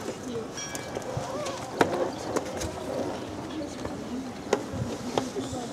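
Spectators nearby, men, women and children, chat quietly outdoors.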